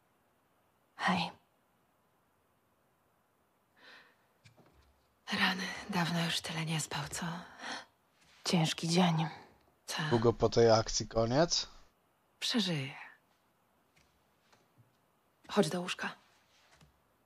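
Another young woman answers quietly and tiredly.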